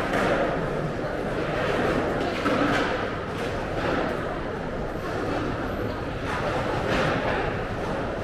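A crowd murmurs in the distance under an echoing concrete roof.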